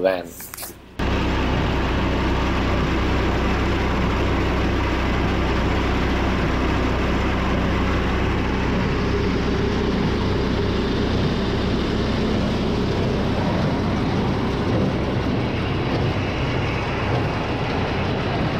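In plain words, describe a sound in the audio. A small gasoline engine runs.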